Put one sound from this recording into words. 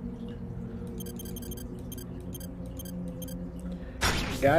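An electronic control panel beeps in quick repeated bursts.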